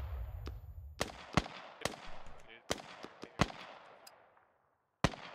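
Rifle shots ring out and echo across open ground.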